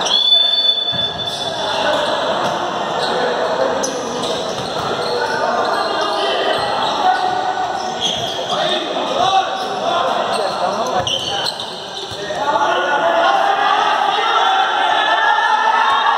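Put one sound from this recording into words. Young men shout to each other across a large echoing hall.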